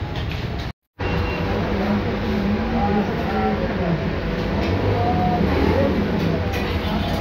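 Other people chatter in the background.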